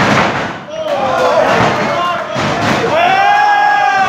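Bodies slam onto a wrestling ring's canvas with heavy thuds.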